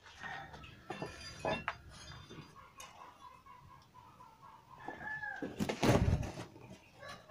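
A metal frame clanks against concrete.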